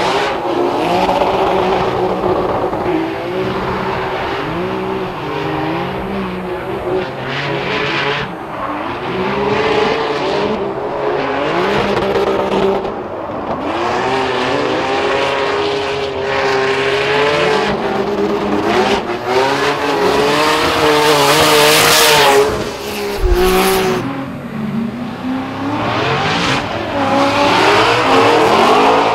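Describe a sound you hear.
Car engines rev hard and bounce off the limiter.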